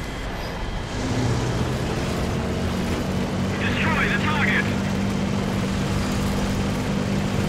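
A tank engine rumbles steadily as the tank drives over sand.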